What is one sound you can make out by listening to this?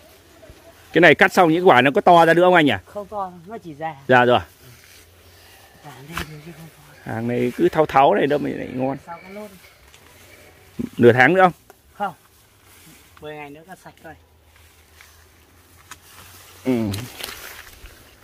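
A man talks loudly and animatedly nearby.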